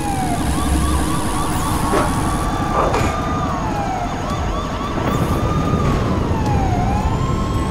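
Flames crackle and roar.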